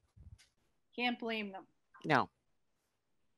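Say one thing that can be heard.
A younger woman speaks briefly over an online call.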